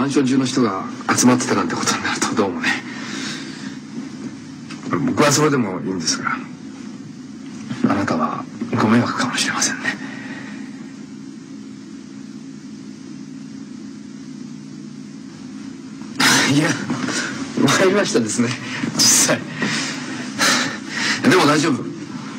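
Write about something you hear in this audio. A man speaks tensely nearby.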